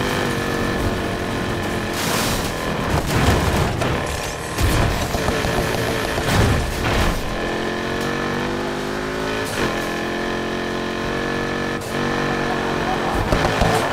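A car engine roars at high revs, rising and falling in pitch as it accelerates.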